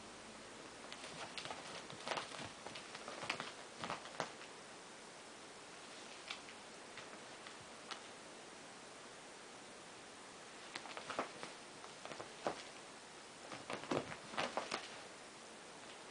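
Two cats scuffle and thump about on a soft sofa.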